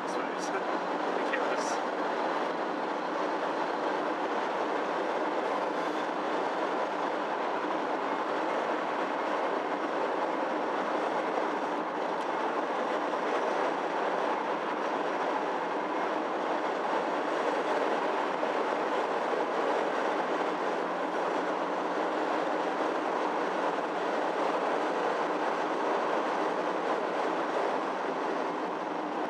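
A car drives steadily along a road, with a constant hum of the engine and tyres.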